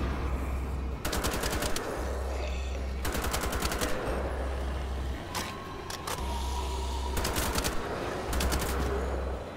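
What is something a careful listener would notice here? Twin machine guns fire in rapid bursts.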